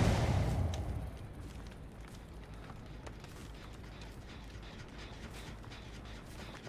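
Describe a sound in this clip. Footsteps crunch softly on dry ground.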